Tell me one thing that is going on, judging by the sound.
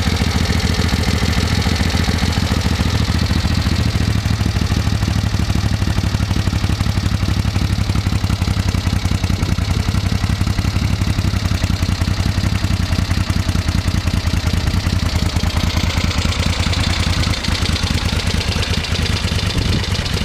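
A Moto Guzzi V7 Special V-twin motorcycle idles with a lumpy, throbbing exhaust.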